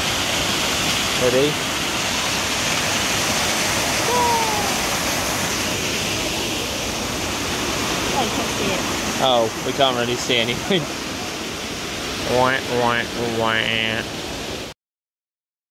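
A waterfall rushes and splashes close by.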